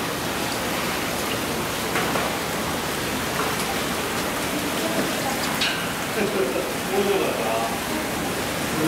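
Water runs and splashes steadily into a tank.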